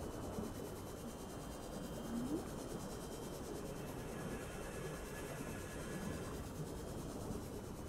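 Water rushes and gurgles softly around a moving craft.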